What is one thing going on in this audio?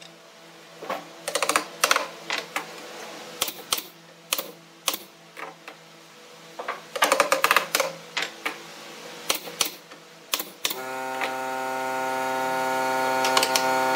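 A rubber mallet taps on wood.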